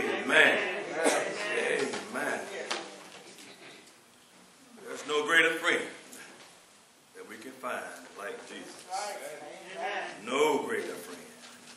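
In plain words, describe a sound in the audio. A man preaches with feeling into a microphone, his voice echoing in a large room.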